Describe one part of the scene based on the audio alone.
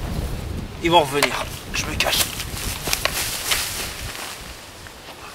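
Tall grass rustles and swishes as a man pushes through it.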